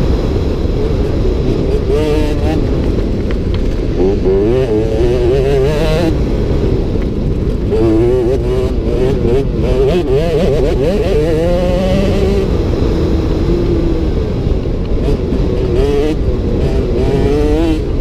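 A motorcycle engine roars up close, revving up and down as it rides.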